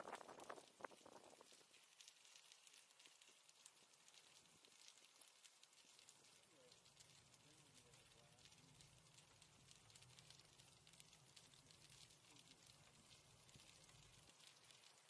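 Bicycle tyres hum and rattle over asphalt.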